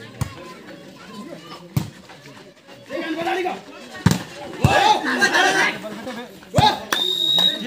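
A ball is struck with sharp slaps.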